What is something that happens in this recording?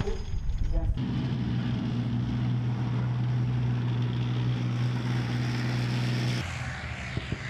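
Tank tracks clank and grind over the ground.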